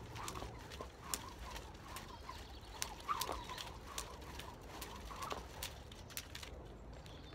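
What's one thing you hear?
A skipping rope slaps against wet pavement in a quick, steady rhythm.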